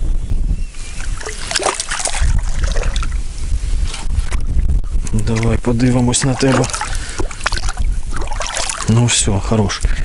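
A fish splashes and thrashes at the surface of the water.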